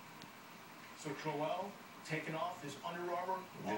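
A young man speaks into a microphone, heard through a television speaker.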